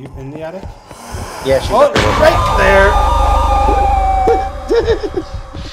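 A man lets out a sudden, loud, harsh scream.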